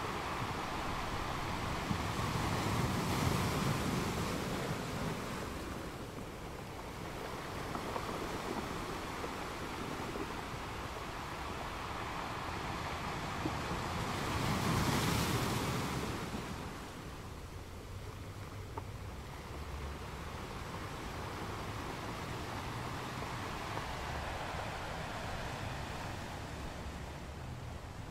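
Ocean waves crash onto rocks and wash back with a steady roar.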